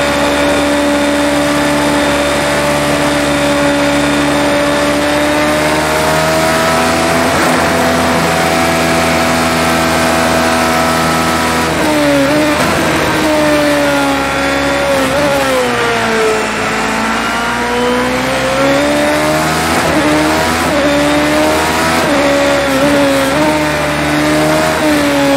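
A racing car engine screams at high revs, shifting gears as it brakes and accelerates.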